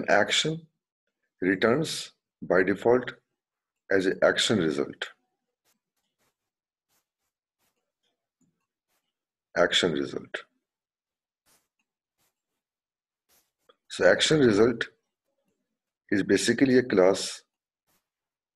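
A man speaks calmly into a microphone in short phrases with long pauses.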